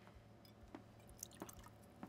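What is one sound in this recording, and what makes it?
Liquid pours into a glass.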